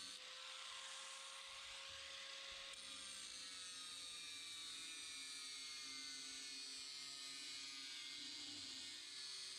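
An angle grinder whines loudly and grinds against a metal drum.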